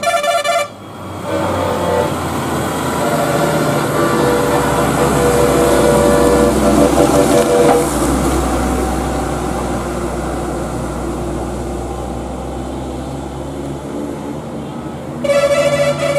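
A heavy truck engine rumbles as it climbs, growing louder and then slowly fading.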